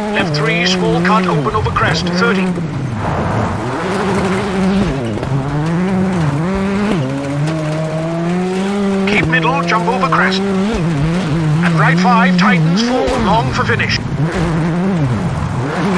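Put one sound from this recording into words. A rally car engine roars, its pitch rising and dropping with each gear change.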